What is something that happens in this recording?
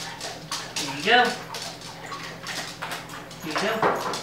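Dogs' paws patter on a wooden floor.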